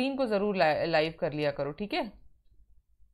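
A young woman speaks clearly into a close microphone.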